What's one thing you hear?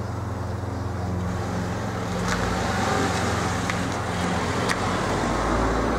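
A hatchback car drives past.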